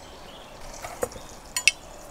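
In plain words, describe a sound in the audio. A knife knocks on a wooden board.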